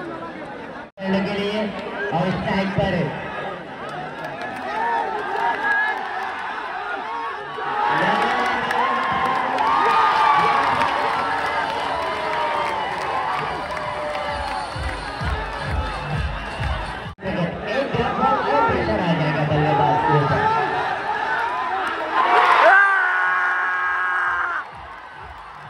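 Men's voices call out loudly over a crowd.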